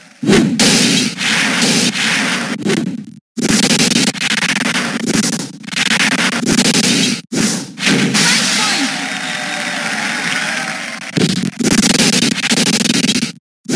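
Electronic sound effects zap and whoosh as a disc is thrown.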